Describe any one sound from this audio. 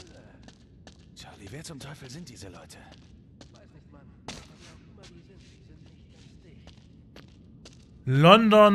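Footsteps run and scuff over rocky ground.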